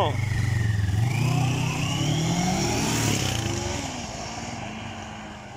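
Motorbikes pass by on the road.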